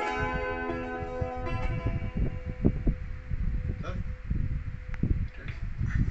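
An electric guitar chord rings out and slowly fades.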